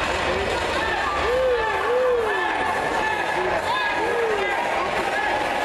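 Spectators whistle and shout loudly.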